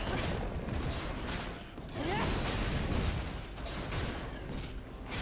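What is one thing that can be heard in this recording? Game spell effects crackle, whoosh and clash in a busy fight.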